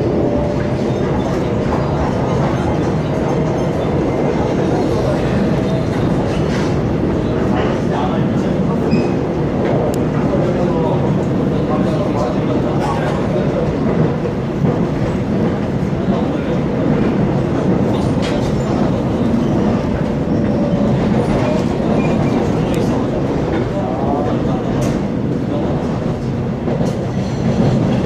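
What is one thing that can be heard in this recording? A vehicle rumbles steadily as it travels along.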